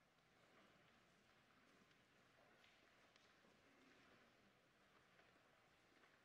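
A man speaks calmly through a microphone in a large, echoing hall.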